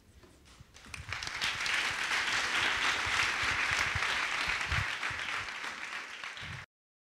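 A crowd laughs loudly.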